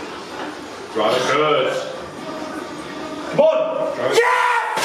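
A man shouts encouragement loudly nearby.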